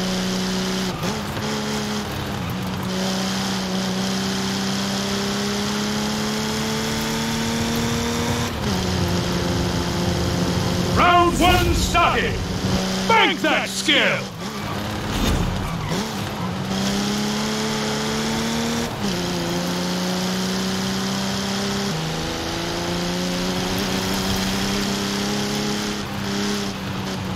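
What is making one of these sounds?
A car engine roars steadily at high speed, dropping in pitch at each gear shift.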